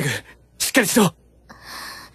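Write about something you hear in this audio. A young man calls out urgently close by.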